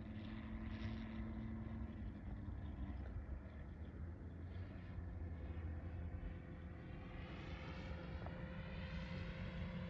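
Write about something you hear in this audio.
A jet plane roars overhead with a steady, rushing engine rumble.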